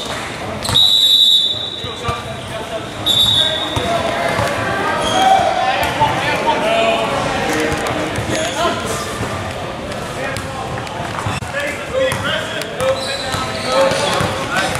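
Young players and spectators call out, echoing in a large gym.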